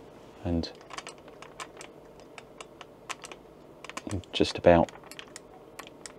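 Small plastic parts click and tap against each other up close.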